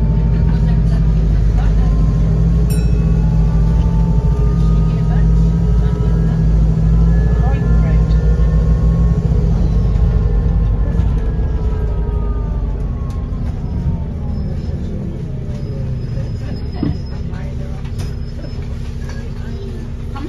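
Loose fittings rattle inside a moving bus.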